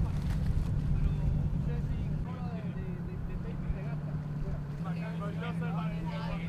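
A boat engine rumbles steadily nearby.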